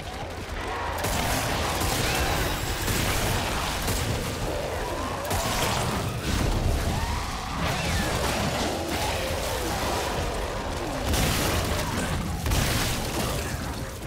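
Monstrous creatures shriek and snarl close by.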